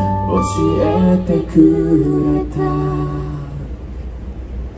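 A band plays loud music through loudspeakers outdoors.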